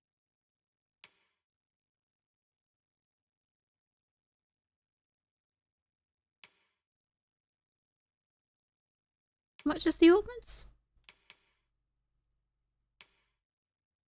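Soft menu clicks sound as selections change.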